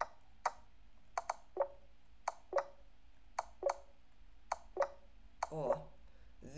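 Short clicks sound in quick succession.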